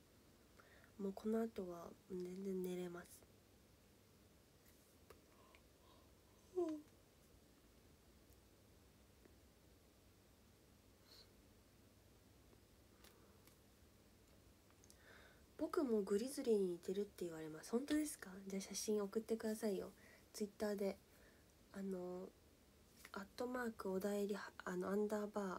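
A young woman speaks softly and close up, with pauses.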